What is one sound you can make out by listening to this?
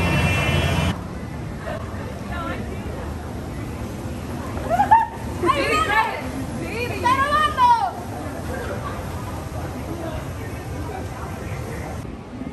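A monorail train rolls by overhead.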